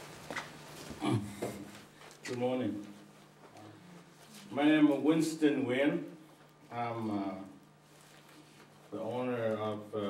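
An elderly man speaks slowly into a microphone, pausing between phrases.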